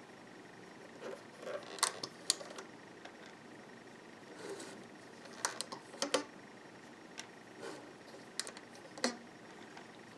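Rubber bands click and snap softly against plastic pegs.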